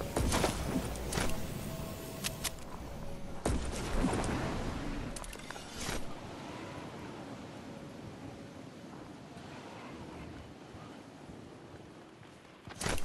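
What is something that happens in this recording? Wind rushes past during a glide through the air.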